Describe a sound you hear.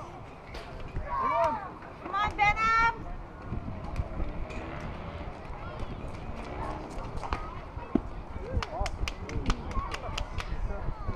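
Young players shout from across an open field.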